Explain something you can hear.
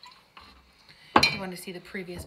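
A bottle is set down on a hard surface with a knock.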